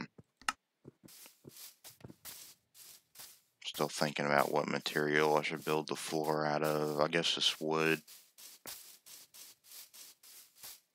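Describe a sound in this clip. Footsteps thud steadily on grass.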